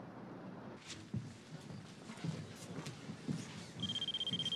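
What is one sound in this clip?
Footsteps echo along a hallway.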